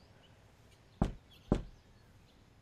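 Knuckles knock twice on a wooden door.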